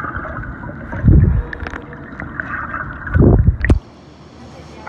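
Water splashes near the surface.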